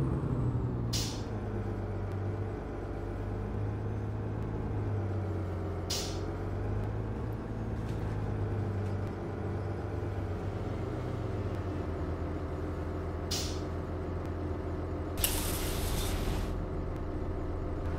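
A diesel articulated city bus engine hums while driving through streets.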